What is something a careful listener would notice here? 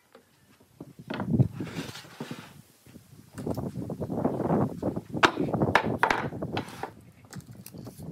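Wooden boards and blocks knock and thud against a table.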